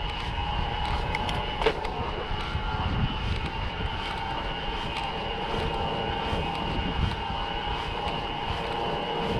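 Bicycle tyres roll over a rough road.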